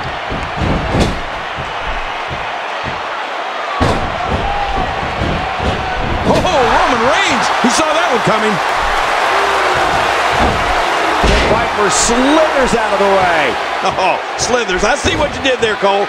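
Heavy bodies thud onto a wrestling ring mat.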